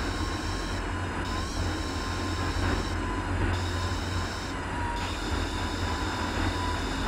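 A race car engine roars steadily at high speed, shifting slightly in pitch.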